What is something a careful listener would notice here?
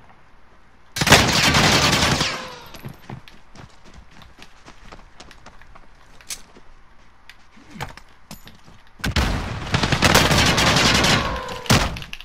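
A machine gun fires loud rapid bursts.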